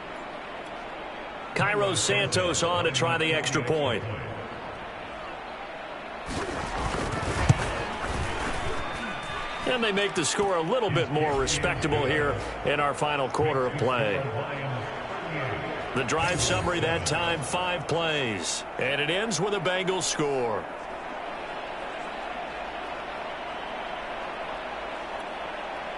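A large crowd cheers in a stadium.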